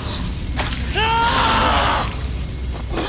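A man grunts and cries out while fighting.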